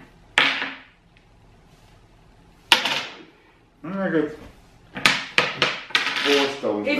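Game tiles click and clatter sharply on a table.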